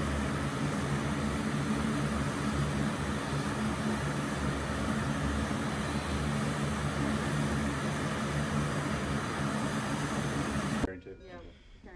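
Aircraft propeller engines roar loudly and steadily outdoors.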